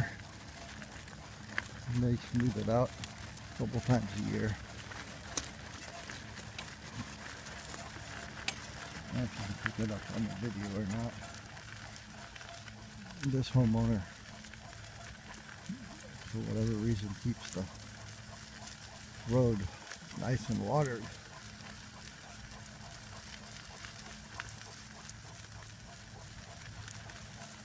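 A dog's paws patter on gravel as it trots.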